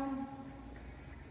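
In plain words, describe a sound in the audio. A young woman makes a short vocal sound close by.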